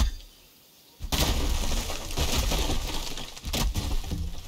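A wooden log cracks and crumbles apart with a loud rumbling crash.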